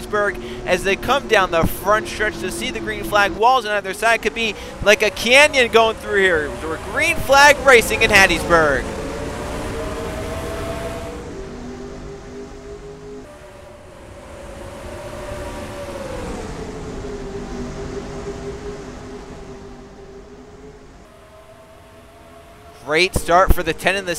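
Many race car engines roar together, rising and falling in pitch.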